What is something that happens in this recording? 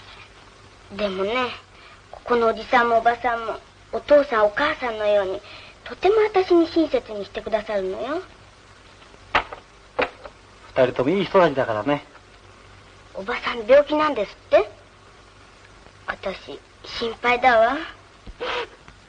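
A young girl speaks earnestly, close by.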